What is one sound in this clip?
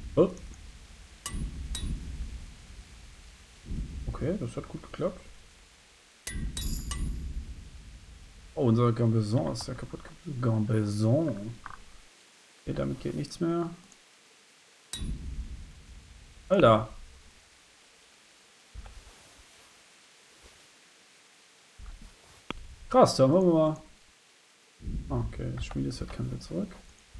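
A man talks calmly and close into a microphone, in short bursts with pauses.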